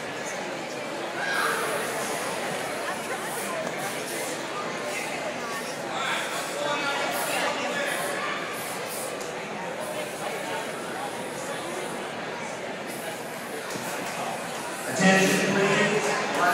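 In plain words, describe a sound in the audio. A large crowd murmurs and chatters in a big echoing gym.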